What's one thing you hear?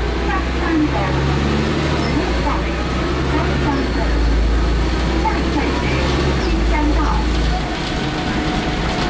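A woman talks quietly nearby.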